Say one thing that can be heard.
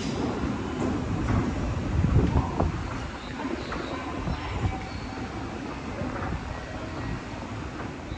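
An escalator rumbles as it runs.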